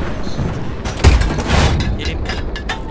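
A large gun fires with a heavy boom that rumbles away.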